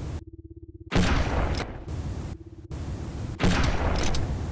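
A weapon fires energy bolts with a whooshing hum.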